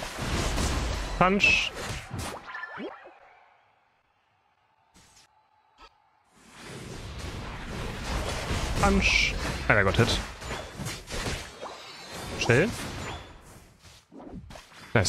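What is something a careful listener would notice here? Video game battle effects whoosh and clash.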